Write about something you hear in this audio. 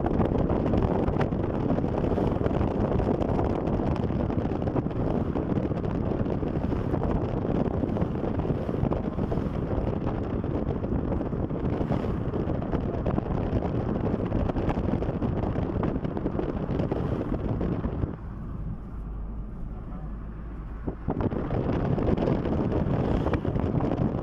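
A car's tyres roar steadily on the road.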